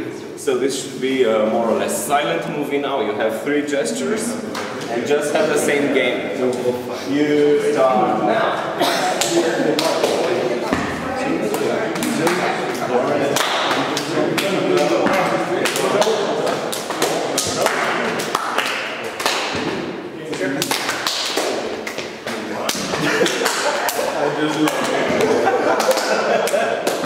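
A crowd of people talk and laugh in a large echoing hall.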